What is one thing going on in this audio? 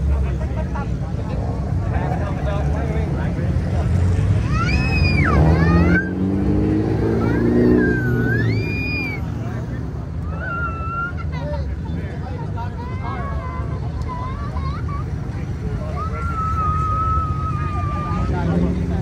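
A crowd of young men and women chatters and calls out outdoors.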